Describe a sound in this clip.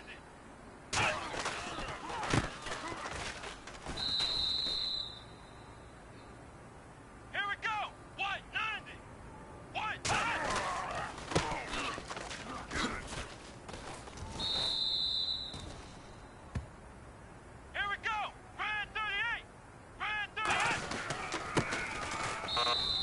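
Football players collide with heavy thuds.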